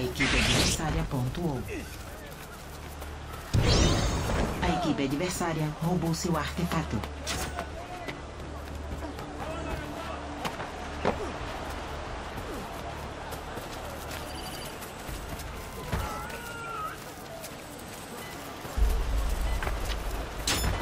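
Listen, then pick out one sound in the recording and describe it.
Footsteps run quickly over dirt and wooden rooftops.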